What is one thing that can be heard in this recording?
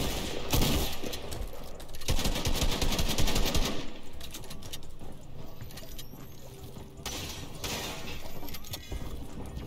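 Building pieces clatter and crash in a video game.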